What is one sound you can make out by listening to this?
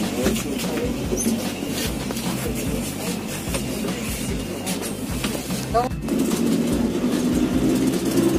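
A bus engine rumbles steadily while the bus drives along.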